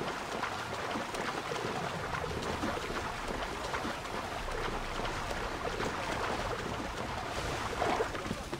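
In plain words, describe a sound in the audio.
A swimmer splashes through choppy sea water.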